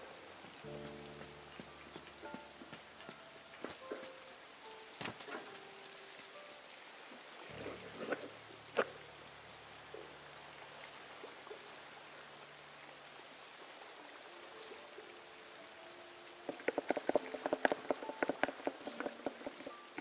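Quick light footsteps patter on the ground.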